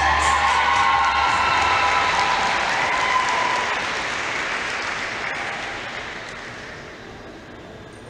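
An audience applauds and cheers in a large hall, then fades away.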